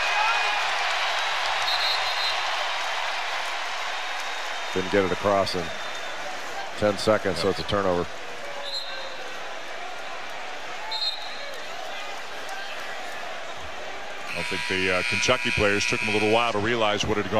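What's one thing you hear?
A large indoor crowd murmurs and cheers in an echoing arena.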